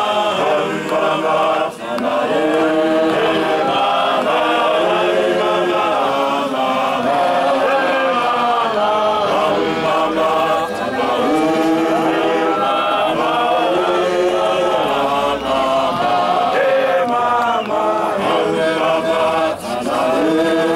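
A large choir of men sings together outdoors.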